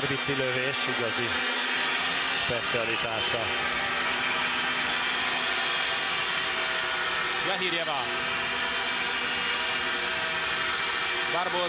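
A large crowd cheers and chants steadily in an echoing arena.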